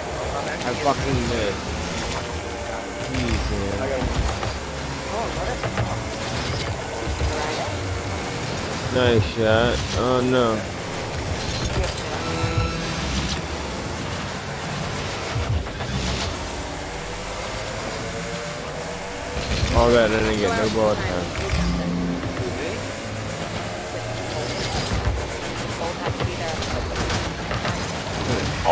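A car engine hums and revs steadily.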